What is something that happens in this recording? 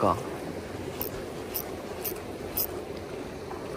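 A fishing reel clicks as its handle is turned.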